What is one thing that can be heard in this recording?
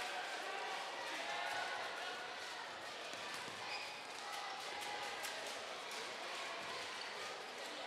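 Shoes squeak on a hard floor.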